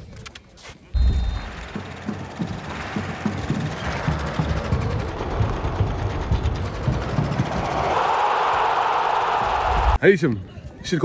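A stadium crowd cheers and roars, swelling louder.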